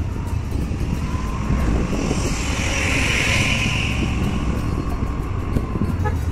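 A motorcycle engine runs close ahead.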